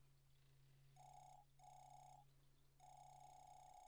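Rapid high electronic blips chatter in short bursts, like a game character talking.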